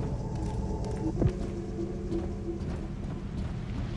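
Footsteps run across a metal floor.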